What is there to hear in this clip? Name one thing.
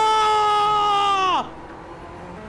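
A racing car engine roars and drops in pitch as it shifts down.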